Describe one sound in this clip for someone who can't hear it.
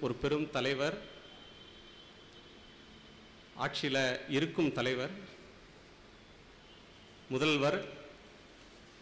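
A man speaks in bursts through a microphone in a large echoing hall, with long pauses.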